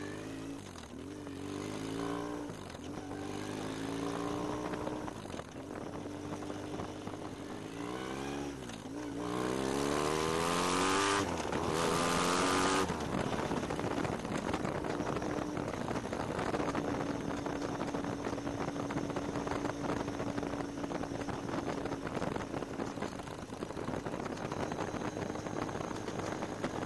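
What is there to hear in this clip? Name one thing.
A motorcycle engine revs up and down through the gears, rising and falling in pitch.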